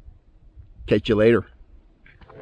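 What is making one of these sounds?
A middle-aged man speaks briefly and casually, close to the microphone.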